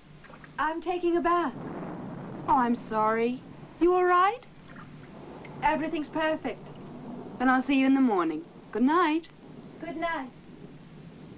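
A young woman speaks in a low, hushed voice close by.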